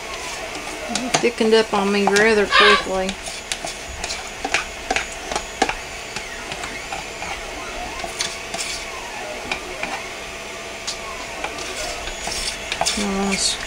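A spoon clinks and scrapes against a metal container.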